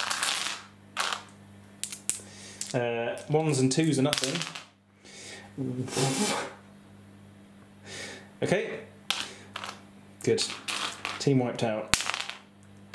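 Dice clatter and roll on a tabletop.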